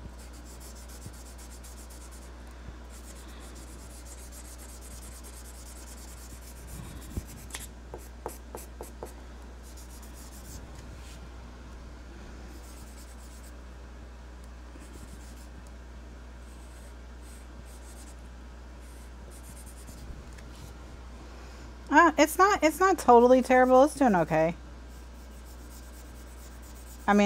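A marker squeaks softly as it colours on paper.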